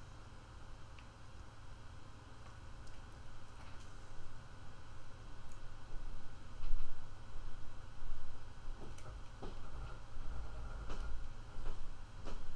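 Small footsteps patter on a hard floor.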